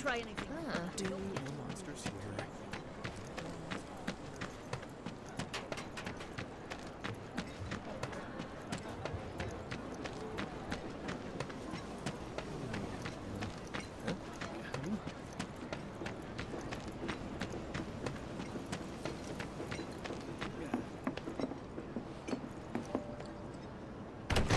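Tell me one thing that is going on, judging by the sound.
Quick footsteps run steadily over hard ground.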